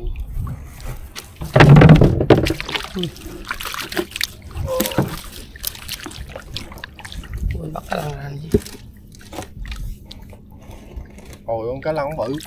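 Water splashes as a fishing net is hauled from a river against a boat's side.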